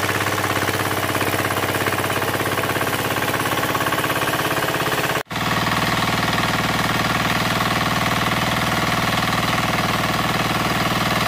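A small diesel engine chugs loudly and steadily close by.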